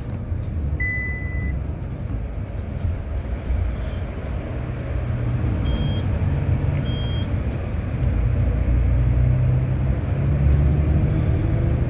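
Traffic roars, echoing inside a tunnel.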